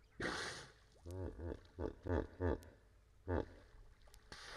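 A hippo grunts in deep, rhythmic bursts.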